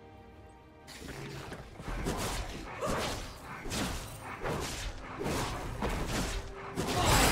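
Spell blasts and weapon hits crackle and whoosh in a busy video game battle.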